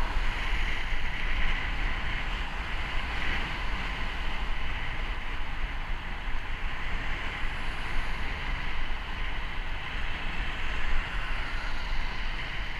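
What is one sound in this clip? Cars drive past along a busy road.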